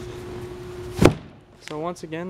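A padded seat cushion thuds into place.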